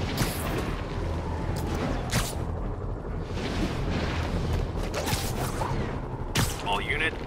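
Web lines shoot out with sharp, hissing swishes.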